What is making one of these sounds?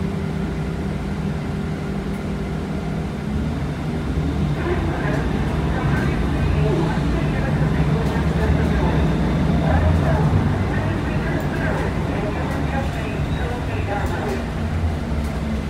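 A bus engine rumbles low and steady while the bus drives.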